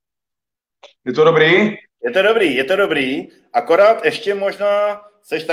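A young man talks over an online call.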